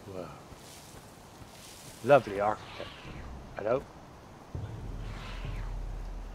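Footsteps swish through grass.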